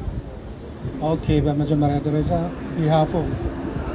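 A man speaks through a microphone outdoors.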